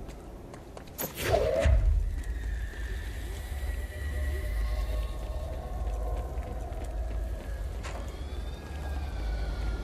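A heavy barrel is hurled through the air and crashes.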